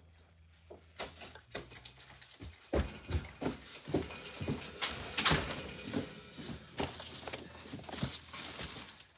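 Cardboard rustles and thumps as a box is handled up close.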